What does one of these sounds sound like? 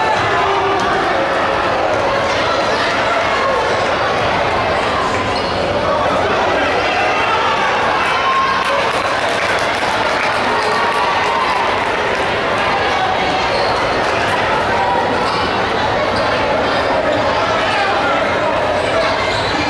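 A crowd chatters and cheers throughout in a large echoing gym.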